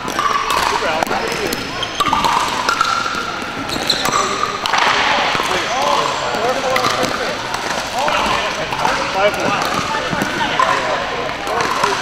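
Men and women chatter at a distance in a large echoing hall.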